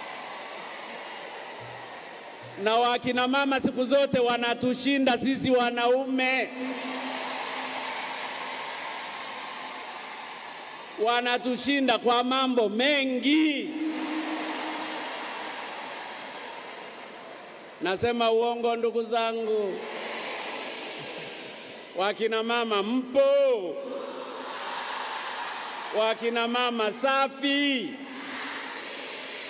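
A large crowd cheers and murmurs in a big echoing hall.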